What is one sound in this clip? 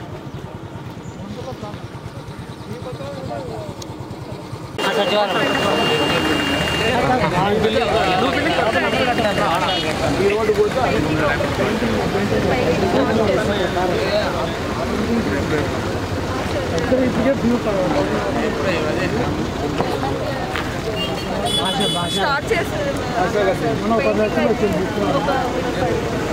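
Several men talk over one another in a crowd outdoors.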